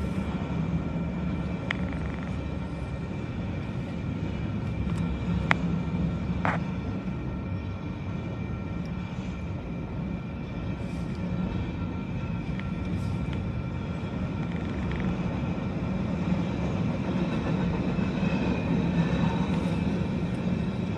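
A freight train's cars rumble past on steel rails.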